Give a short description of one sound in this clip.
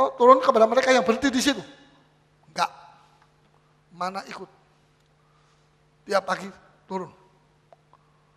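A middle-aged man speaks with animation through a microphone in a reverberant hall, pausing between phrases.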